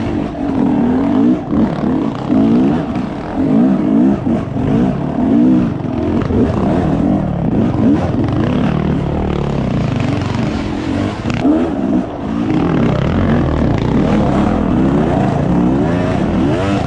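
A dirt bike engine revs up and down.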